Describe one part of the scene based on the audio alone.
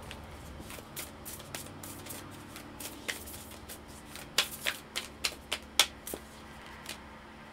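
Cards slap and riffle as they are shuffled.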